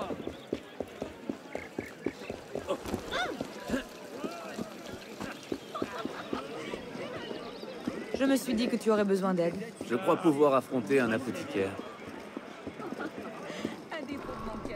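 Footsteps patter quickly on cobblestones.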